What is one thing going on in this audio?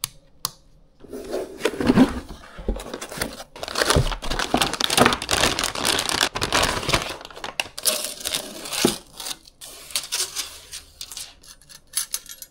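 A plastic bag crinkles and rustles loudly.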